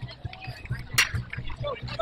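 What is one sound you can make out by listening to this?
A metal bat cracks sharply against a baseball.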